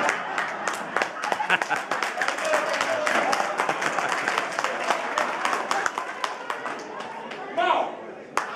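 A crowd claps and applauds in a room.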